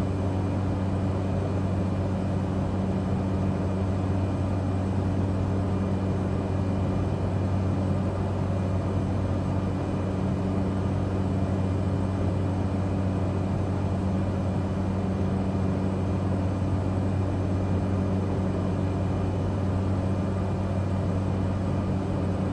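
A propeller aircraft engine drones steadily from inside the cockpit.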